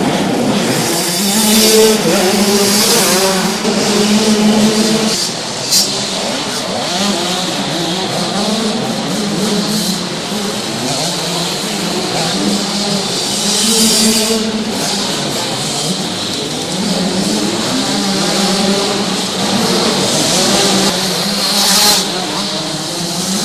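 Dirt bike engines rev and buzz loudly in a large echoing hall.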